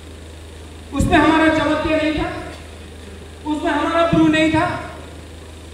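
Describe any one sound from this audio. A man speaks loudly and with force into a microphone over loudspeakers in a large echoing hall.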